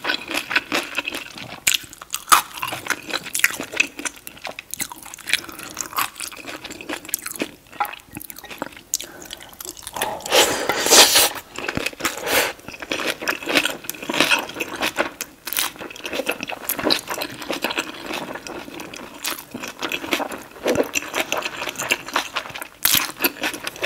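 A woman chews wet, crunchy food close to a microphone.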